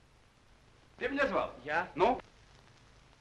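A man speaks firmly, up close.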